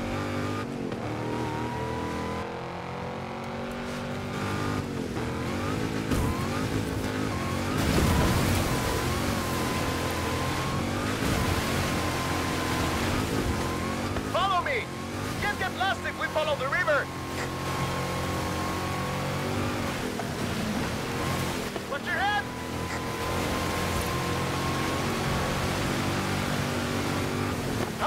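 A car engine roars and revs steadily.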